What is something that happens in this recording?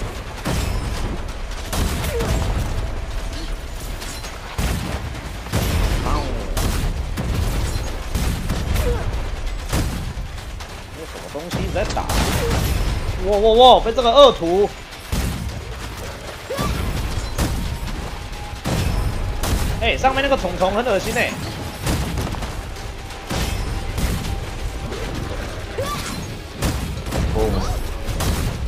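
Gunfire and energy blasts crackle and boom in rapid bursts.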